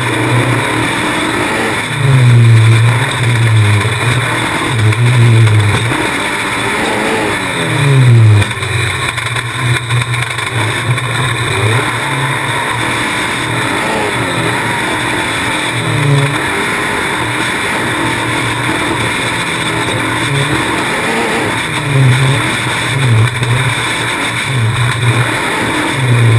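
An off-road buggy engine roars and revs up and down close by.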